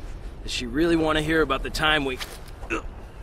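A young man speaks in a low, tense voice.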